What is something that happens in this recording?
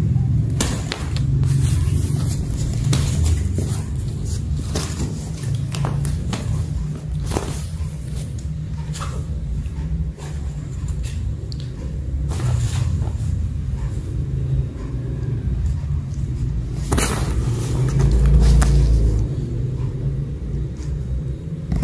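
A fabric play tunnel rustles and crinkles as kittens paw at it.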